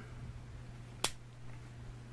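A folding knife's blade snaps shut with a sharp metallic click.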